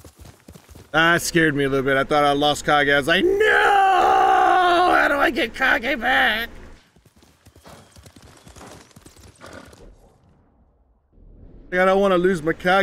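A man talks loudly and with animation into a close microphone.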